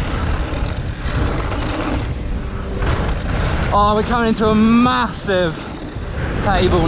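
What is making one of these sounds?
Bike tyres crunch and rattle over a dirt trail.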